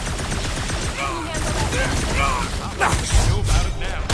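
Electric energy crackles and zaps in a fight.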